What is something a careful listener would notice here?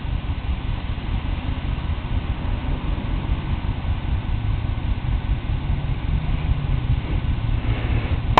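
A hand rubs softly against a tortoise's shell.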